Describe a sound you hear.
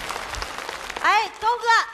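A woman speaks loudly on a stage microphone.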